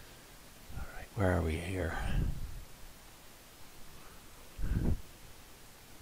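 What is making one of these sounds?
A young man speaks casually into a headset microphone, close by.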